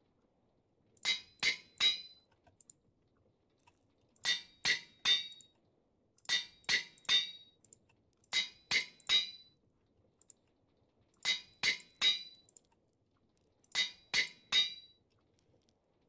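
Short, sharp game menu clicks come in quick groups of three.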